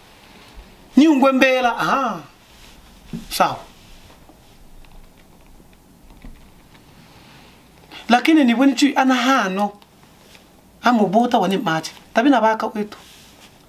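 A man speaks forcefully and close up, in short bursts with pauses.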